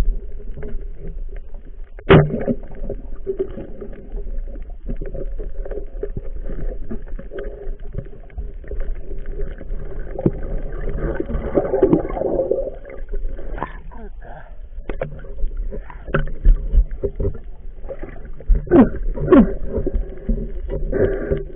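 Water churns and rumbles, heard muffled underwater.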